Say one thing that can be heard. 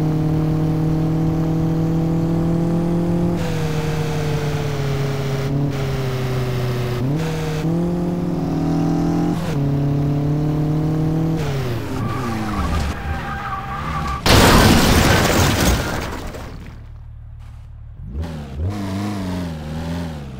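A car engine drones loudly, its pitch rising and falling with gear shifts.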